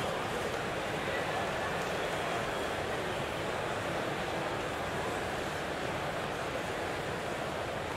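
A large crowd murmurs steadily in a big arena.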